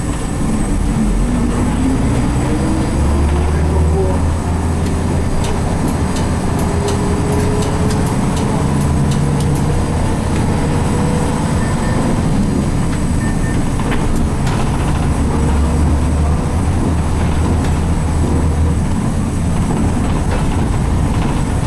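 The bus rattles and creaks as it rolls over the road.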